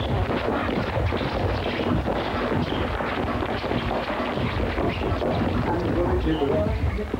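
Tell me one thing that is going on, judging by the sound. Men shout and chatter loudly close by.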